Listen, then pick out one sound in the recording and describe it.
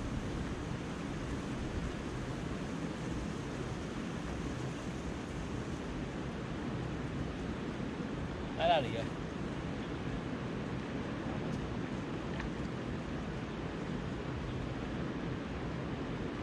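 A shallow river flows and babbles steadily over stones outdoors.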